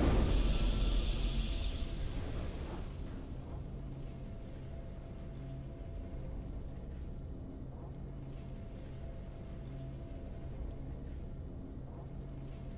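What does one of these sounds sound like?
A soft, steady victory tune plays quietly.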